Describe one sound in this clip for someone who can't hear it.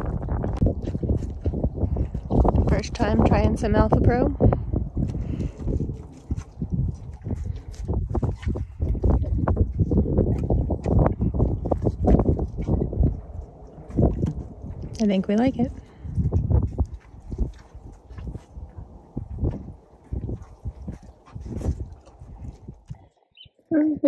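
A horse noisily munches and snuffles at a feed trough.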